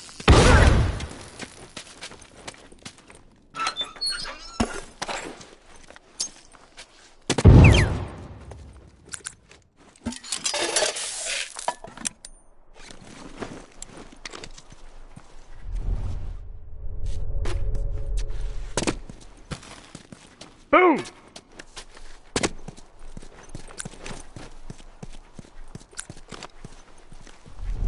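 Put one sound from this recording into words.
Footsteps shuffle and crunch over debris.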